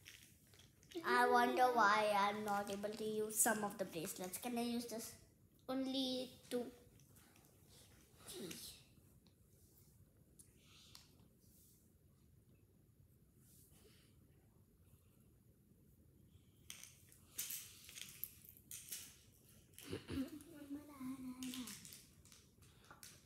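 A young girl speaks close by, in short bursts.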